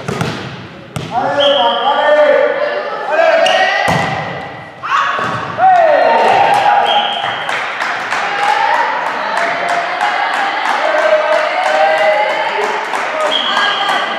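Young women shout and cheer loudly on court.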